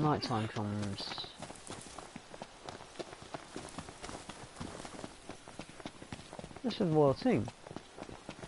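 Footsteps run quickly over a dirt path.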